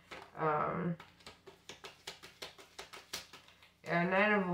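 Paper notes flick quickly one after another as they are counted.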